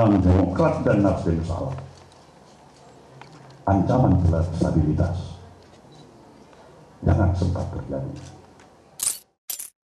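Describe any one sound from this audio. An elderly man speaks forcefully into a microphone in bursts, heard through loudspeakers.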